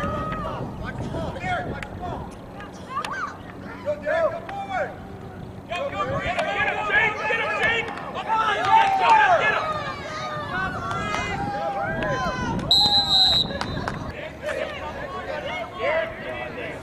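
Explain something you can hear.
Children shout excitedly outdoors.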